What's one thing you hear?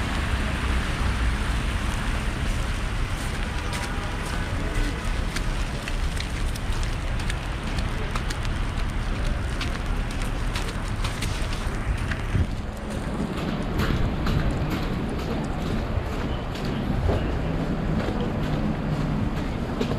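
Footsteps splash on a wet pavement.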